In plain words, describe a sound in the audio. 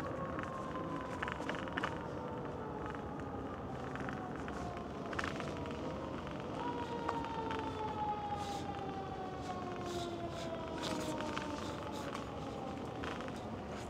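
An electric bike's hub motor whines as the bike rides along.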